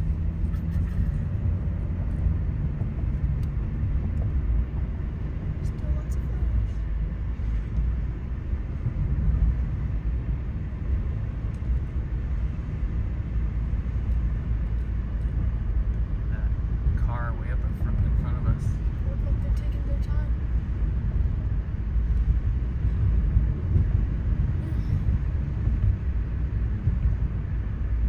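Tyres hum on the road surface.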